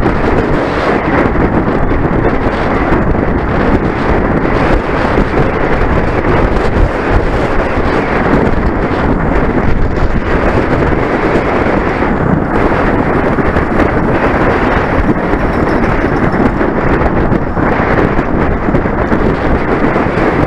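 Strong wind roars steadily past the microphone.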